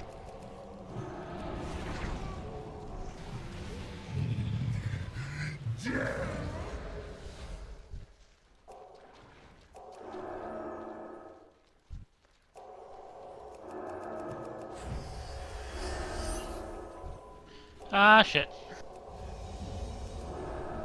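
Magic spell effects whoosh and chime in a game battle.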